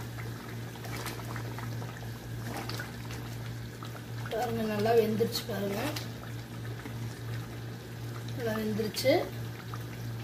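A metal ladle stirs thick sauce in a metal pot, scraping and knocking faintly.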